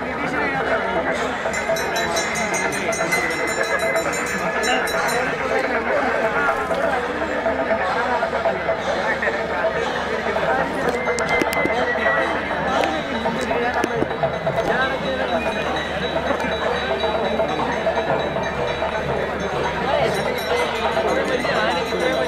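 A large outdoor crowd of men chatters and calls out all around.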